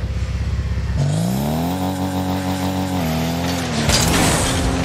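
A car engine revs up and then hums at a steady high pitch.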